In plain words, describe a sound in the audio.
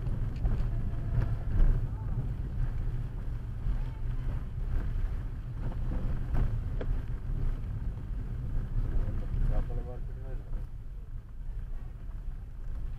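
Tyres roll over a wet, rough road.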